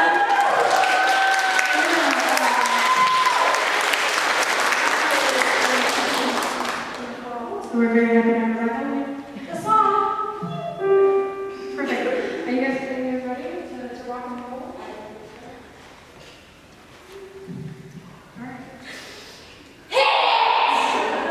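A small choir of women and men sings in harmony in an echoing hall.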